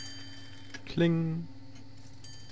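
A clock chimes once, ringing and fading.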